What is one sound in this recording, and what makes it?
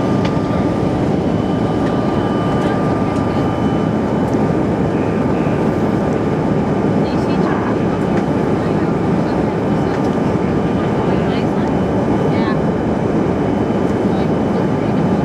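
A jet engine roars steadily inside an airliner cabin in flight.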